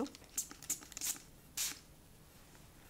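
A spray bottle hisses in short spritzes.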